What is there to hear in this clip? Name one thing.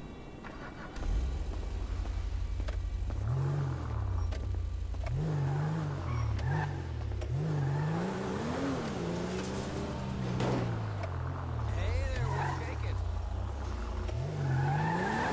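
A car engine starts and revs up and down as the car drives off.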